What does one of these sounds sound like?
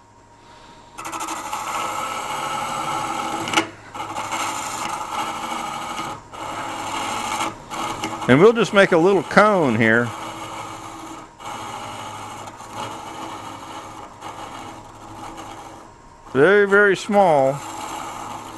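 A gouge scrapes and hisses against spinning wood.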